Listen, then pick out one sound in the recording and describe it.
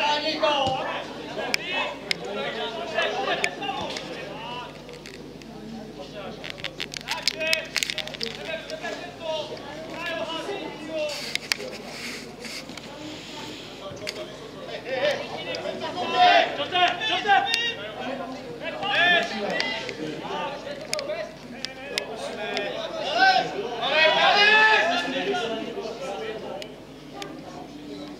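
Adult men talk and call out nearby, outdoors.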